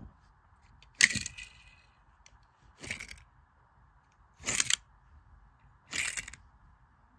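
A small plastic toy car rubs and scrapes along a carpet.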